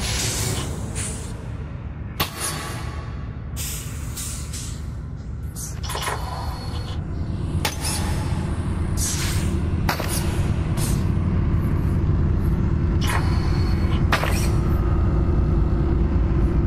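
A deep mechanical hum drones steadily and grows louder.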